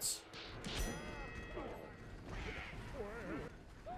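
An electric explosion crackles sharply.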